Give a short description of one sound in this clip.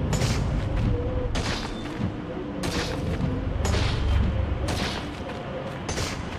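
A strong wind roars and gusts steadily.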